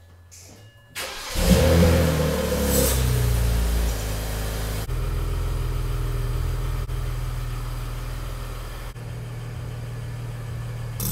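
A car engine starts with a roar and settles into a deep, loud rumbling idle.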